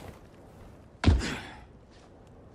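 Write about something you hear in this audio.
Something lands on stone with a heavy thud.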